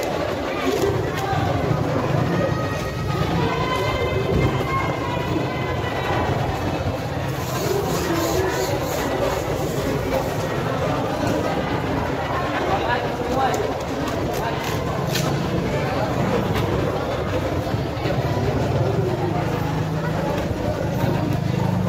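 A crowd of people chatters in a large, echoing market hall.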